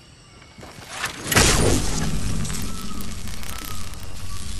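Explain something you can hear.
Wooden ramps clatter and thud as they are built in quick succession.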